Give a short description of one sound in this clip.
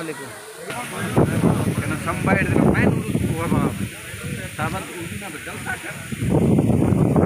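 Several men talk loudly and excitedly close by, outdoors.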